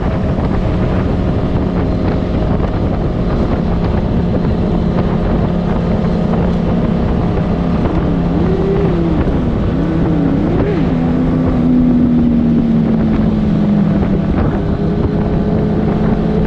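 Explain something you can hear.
A motorcycle engine hums steadily while cruising.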